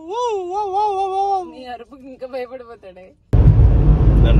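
A young woman speaks close by, in a sing-song, playful voice.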